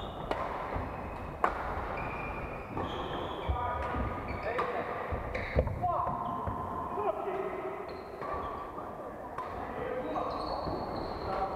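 Shuttlecocks are hit sharply with rackets in a large echoing hall.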